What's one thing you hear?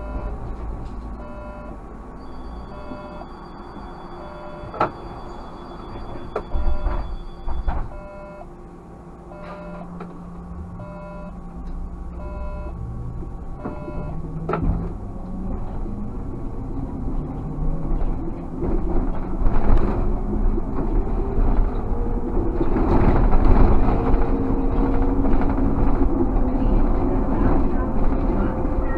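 A car engine hums steadily and grows louder as the car gathers speed.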